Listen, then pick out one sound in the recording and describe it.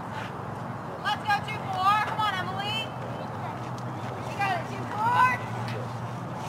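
Young women shout and cheer at a distance outdoors.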